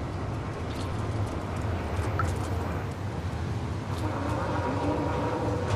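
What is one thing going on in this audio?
A cat's paws patter softly on wet pavement.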